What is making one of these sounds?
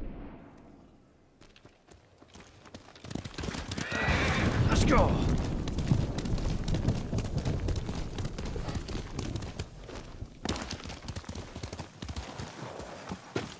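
Horse hooves thud steadily at a gallop.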